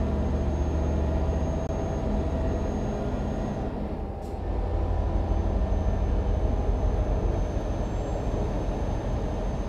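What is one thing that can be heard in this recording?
A truck engine drones steadily at a low pitch.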